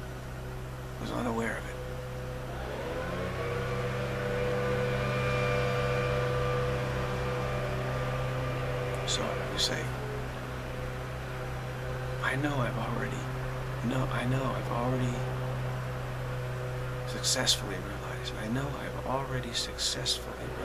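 A middle-aged man speaks calmly and slowly, close by.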